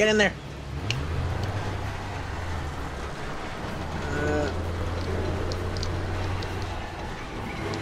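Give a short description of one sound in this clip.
A heavy truck engine rumbles nearby.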